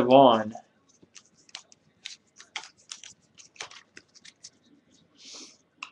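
A hand shuffles through a stack of trading cards, with light clicks and taps.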